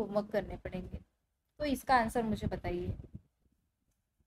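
A young woman speaks calmly and close up, heard through a microphone.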